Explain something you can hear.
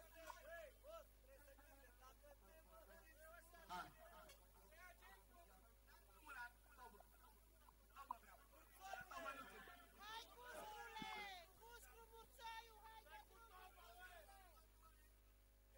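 A crowd of people chatter and call out.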